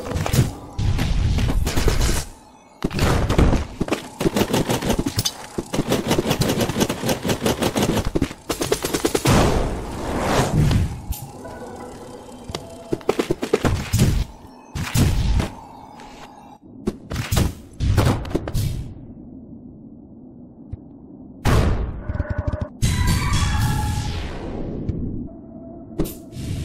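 A game character's attacks strike with sharp whooshes and crashes.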